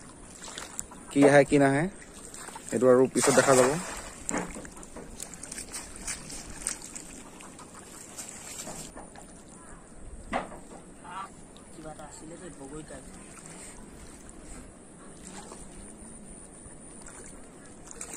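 Water laps gently against a bank.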